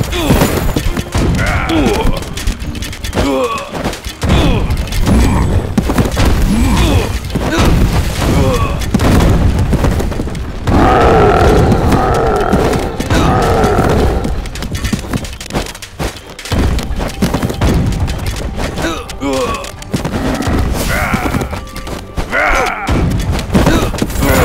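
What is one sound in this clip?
Blows and weapon clashes ring out in a video game battle.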